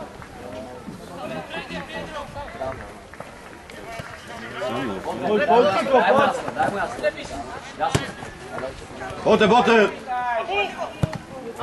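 A football thuds as it is kicked outdoors.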